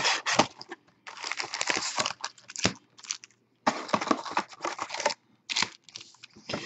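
Foil card packs rustle and shuffle as they are handled.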